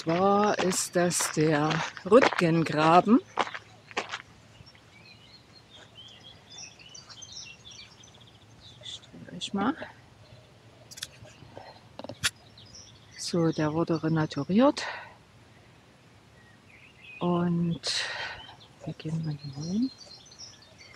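A middle-aged woman talks calmly close by, outdoors.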